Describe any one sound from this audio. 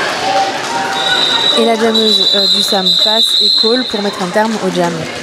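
A referee's whistle blows a long blast.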